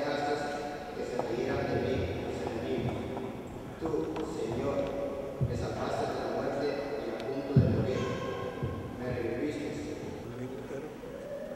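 A man reads aloud through a microphone in a large echoing hall.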